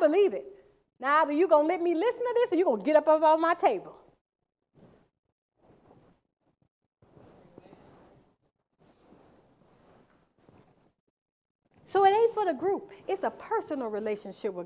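A woman speaks with animation through a microphone, pausing between phrases.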